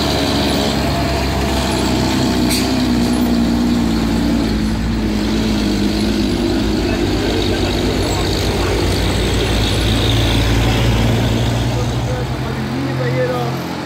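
A heavy truck engine rumbles close by.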